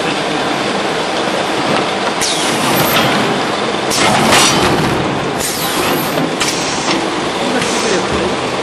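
A packing machine runs with a steady mechanical clatter.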